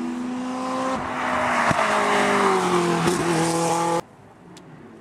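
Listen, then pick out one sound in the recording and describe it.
A sports car engine roars loudly as the car speeds past.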